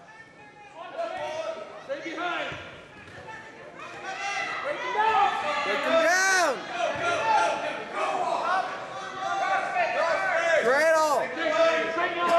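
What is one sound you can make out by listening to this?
Sneakers squeak sharply on a mat in a large echoing hall.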